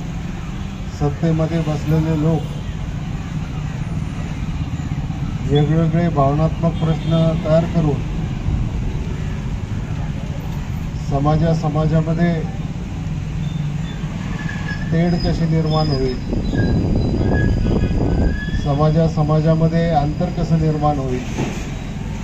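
A middle-aged man speaks into a microphone through a loudspeaker, in short phrases with pauses, outdoors.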